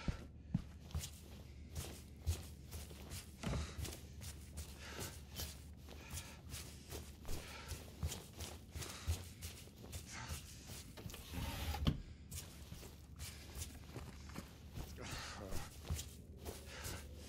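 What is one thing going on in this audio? Footsteps thud slowly across creaking wooden floorboards.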